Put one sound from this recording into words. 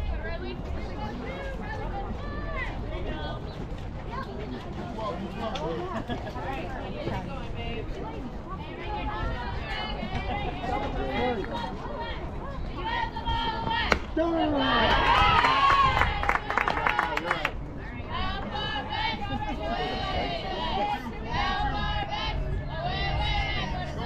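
Young women shout and chatter outdoors throughout.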